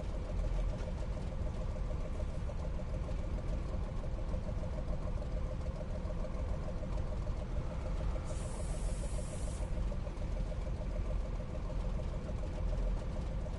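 A tank engine idles with a steady low rumble.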